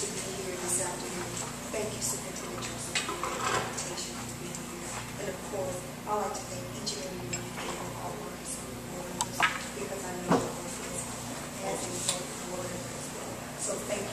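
A woman speaks calmly into a microphone, heard over loudspeakers in a room.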